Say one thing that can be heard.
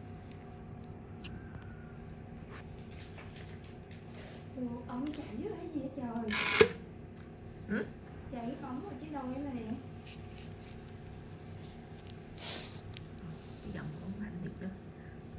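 Latex gloves rustle and squeak softly against skin.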